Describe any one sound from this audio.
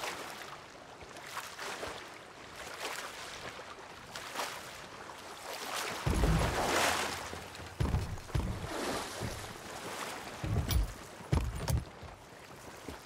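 Waves wash steadily around a wooden ship.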